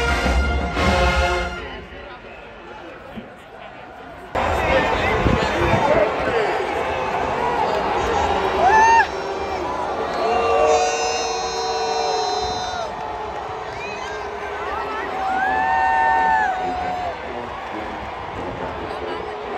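A marching band plays loud brass and drums outdoors.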